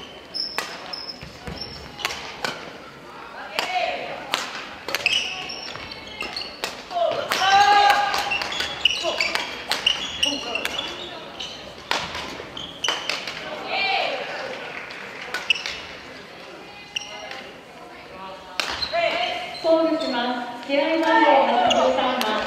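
Young people call out and chatter across the hall.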